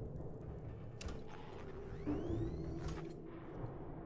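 An electronic tracker beeps.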